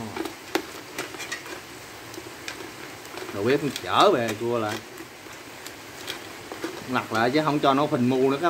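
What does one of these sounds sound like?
Chopsticks clink against a metal pot.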